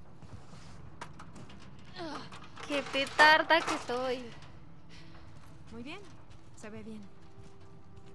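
A metal ladder clanks as someone climbs it.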